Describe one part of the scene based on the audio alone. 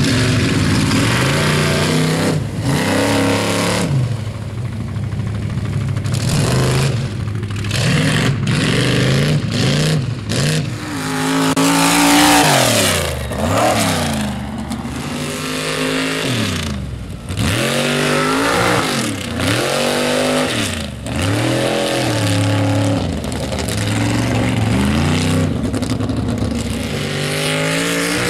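A powerful engine roars and revs up and down repeatedly.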